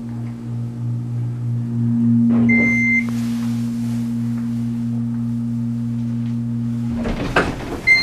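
An elevator motor hums steadily, then stops.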